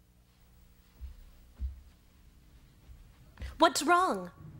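Footsteps thud softly across a floor.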